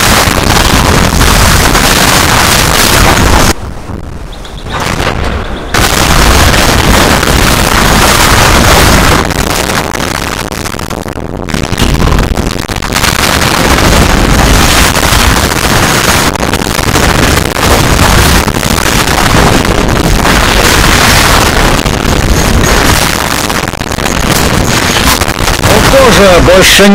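Explosions boom and crackle in a battle.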